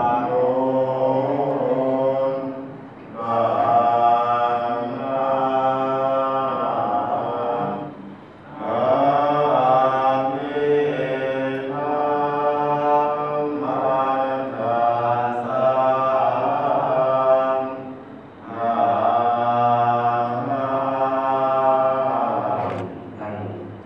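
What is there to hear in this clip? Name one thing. A group of monks chants together in a slow, steady drone through a microphone, pausing briefly for breath.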